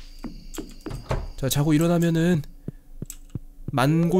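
A wooden door opens and shuts.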